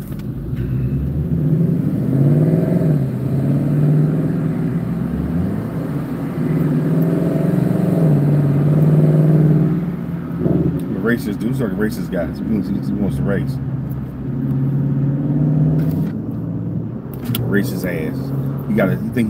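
A car engine grows louder as the car pulls away and drives along the road.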